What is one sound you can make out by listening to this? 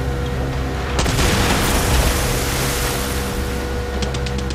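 Explosions boom over the water.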